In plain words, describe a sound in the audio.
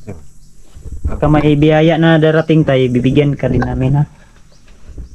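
An older man talks nearby.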